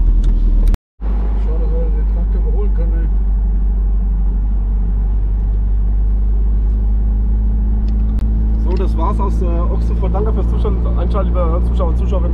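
A car engine drones steadily while driving.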